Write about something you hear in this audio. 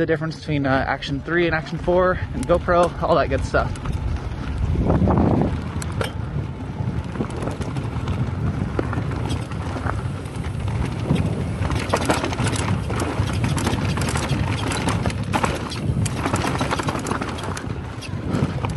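Wind buffets and rumbles past a moving rider.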